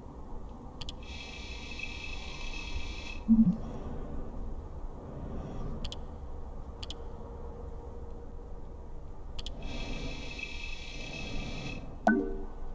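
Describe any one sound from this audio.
A soft electronic shimmering tone plays as a window opens.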